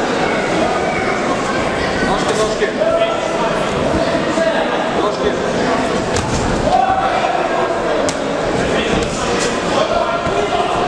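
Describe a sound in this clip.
A crowd chatters and shouts in a large echoing hall.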